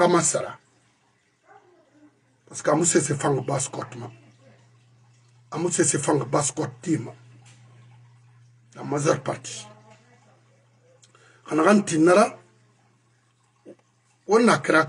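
A middle-aged man speaks close to a microphone with animation, in bursts with pauses.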